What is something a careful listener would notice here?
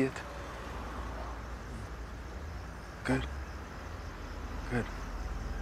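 A man speaks a few short words in a low, calm voice close by.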